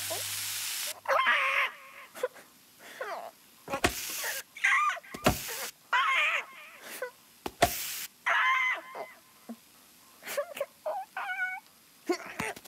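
A cartoon bird squawks and chatters excitedly.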